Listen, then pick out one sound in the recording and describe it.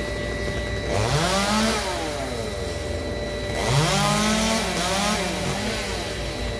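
A chainsaw revs up and down high in a tree.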